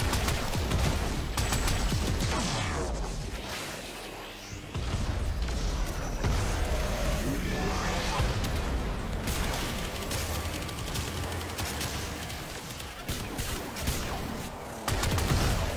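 Rapid gunfire crackles and pops.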